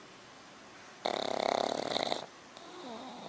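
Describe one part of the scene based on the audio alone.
A small dog whines softly.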